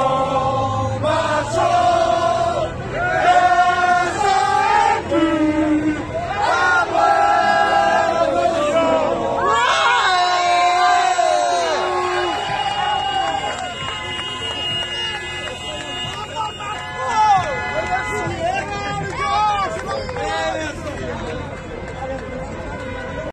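A crowd of men and women sings and chants loudly outdoors.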